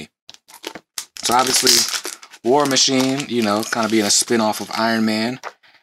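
Paper slides and rustles across a wooden surface.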